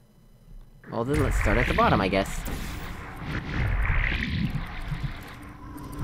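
A portal opens with a swirling, whooshing hum.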